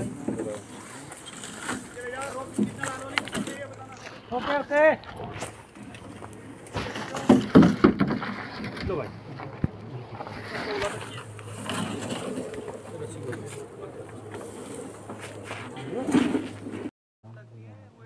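Several men talk and call out to one another outdoors, nearby.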